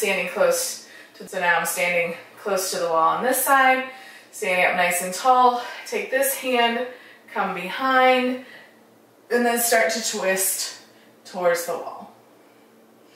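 A woman speaks calmly and clearly, close to the microphone.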